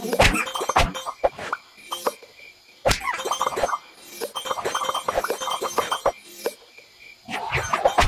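Bright electronic chimes ring out in quick bursts.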